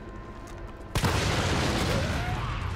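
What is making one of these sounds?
An explosion booms with a roaring blast.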